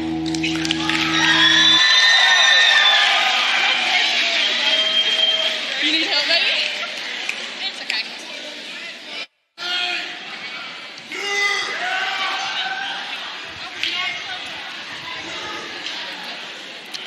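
An audience cheers and claps.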